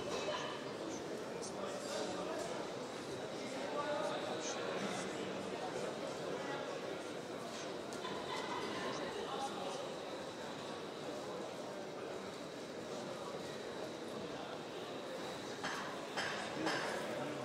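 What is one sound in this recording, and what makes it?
A crowd murmurs and calls out steadily in a large echoing hall.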